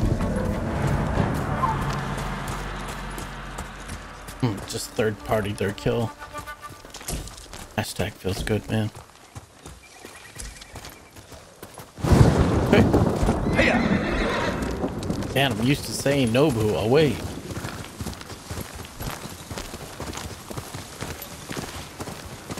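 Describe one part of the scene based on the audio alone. A horse gallops with hooves thudding.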